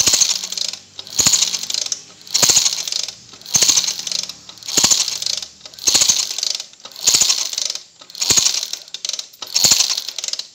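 Metal parts of an engine click and tap as fingers adjust a valve.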